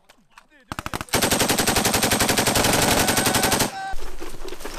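A machine gun fires a long rapid burst close by.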